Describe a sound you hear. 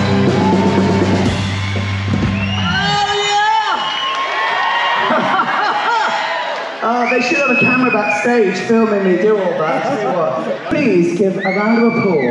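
A man sings loudly through a microphone in a large echoing hall.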